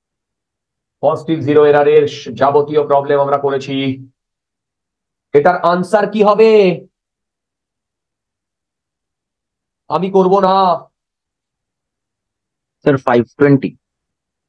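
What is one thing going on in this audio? A man speaks calmly into a microphone, in short bursts with pauses.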